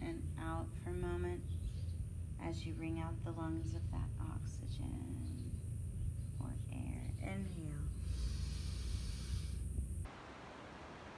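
Wind rumbles and blows outdoors.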